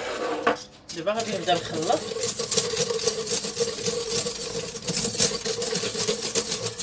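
Fingers scrape and stir dry flour in a metal bowl.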